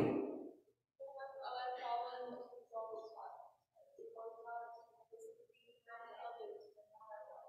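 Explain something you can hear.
A woman speaks calmly into a microphone, heard through loudspeakers.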